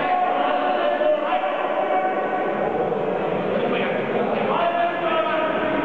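A crowd chatters and shouts in an echoing hall.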